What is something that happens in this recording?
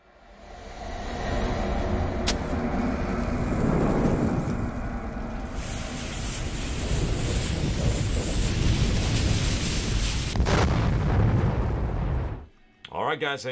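Flames roar in a loud rush.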